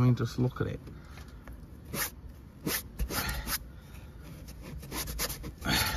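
A cloth rubs against a car's ceiling lining.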